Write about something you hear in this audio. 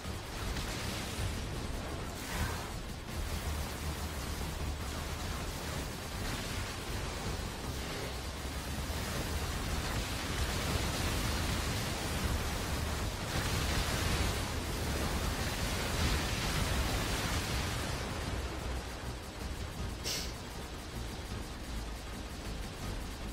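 Rapid gunfire from a video game shooter sounds continuously.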